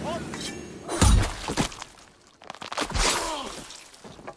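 A blade stabs into a body with a heavy thud.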